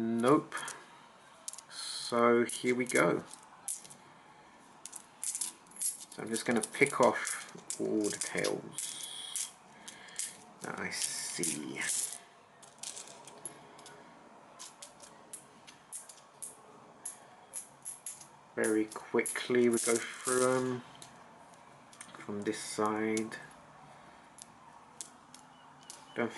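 Coins clink and click as they are slid and picked up one by one.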